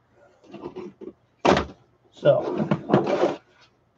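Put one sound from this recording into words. A laptop clatters as it is set down on a pile.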